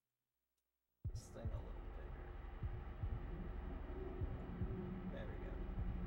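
Eerie game title music plays with low thumping beats.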